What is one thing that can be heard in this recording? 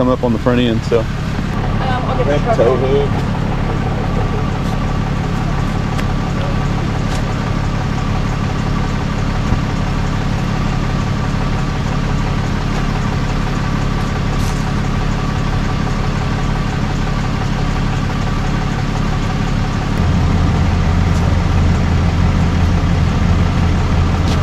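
A truck engine idles steadily, growing louder near the end.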